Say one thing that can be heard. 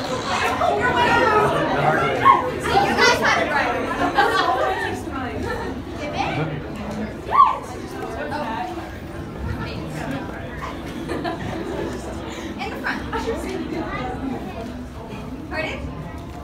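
A crowd of young people chatters and laughs loudly in an echoing hall.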